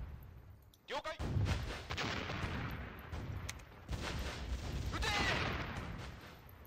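Explosions boom as warships exchange fire.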